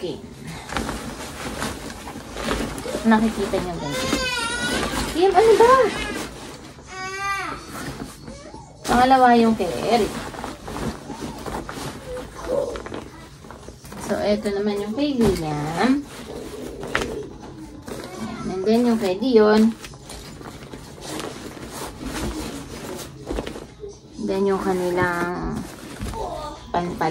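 Fabric and a nylon bag rustle as clothes are packed.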